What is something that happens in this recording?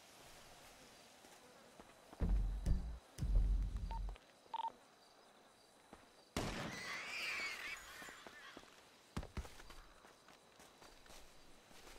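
Footsteps crunch through dry leaves and undergrowth.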